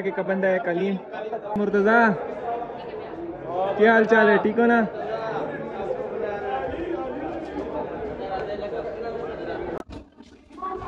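Young men talk and laugh loudly close by.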